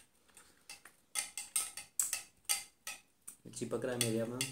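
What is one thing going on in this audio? A spoon clinks against a glass as it stirs.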